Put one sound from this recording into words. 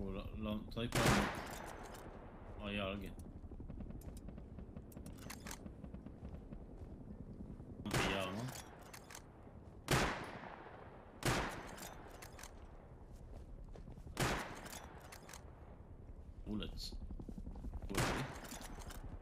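A rifle fires sharp, loud shots every few seconds.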